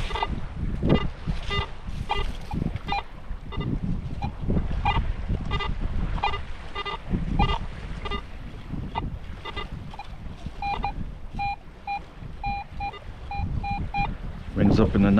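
A metal detector beeps in short repeated tones.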